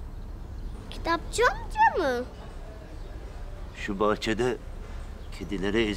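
A young girl speaks excitedly, close by.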